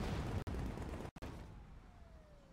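Heavy punches thud in a close fight.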